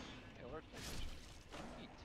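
A sword swings and strikes.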